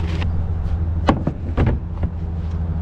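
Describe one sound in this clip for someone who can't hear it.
A plastic lid thumps shut.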